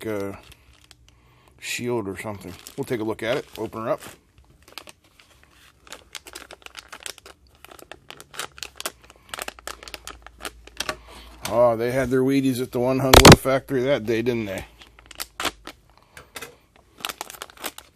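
Plastic packaging crinkles and rustles as hands handle it.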